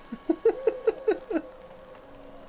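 A man laughs heartily into a close microphone.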